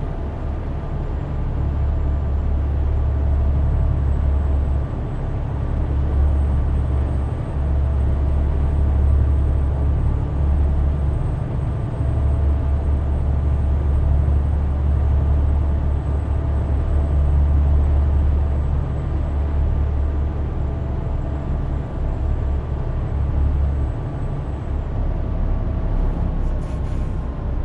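A truck's diesel engine drones low and steady from inside the cab.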